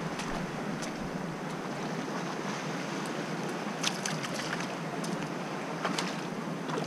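Small waves wash gently over a rocky shore.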